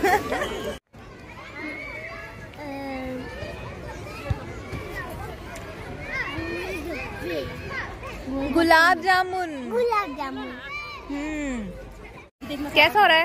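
A young girl talks close by in a bright, playful voice.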